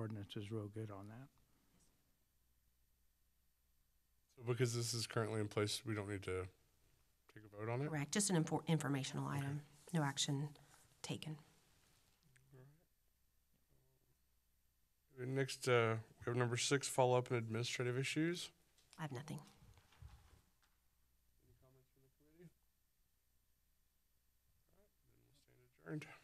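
A woman speaks calmly into a microphone, heard through a loudspeaker in a large room, with pauses.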